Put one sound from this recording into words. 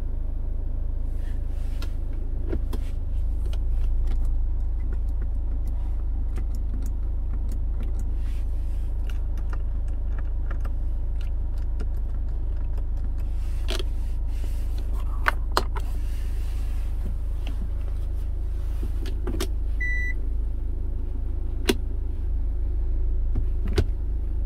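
A car engine idles with a low steady hum.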